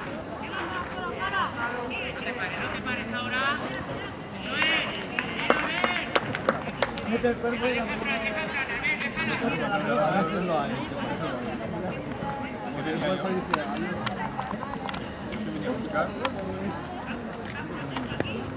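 Young players shout and call to each other outdoors on an open field.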